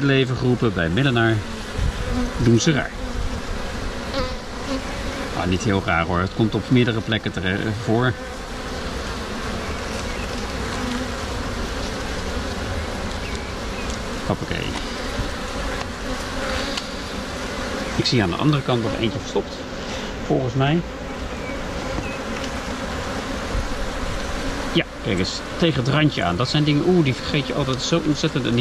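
Honeybees buzz steadily up close, outdoors.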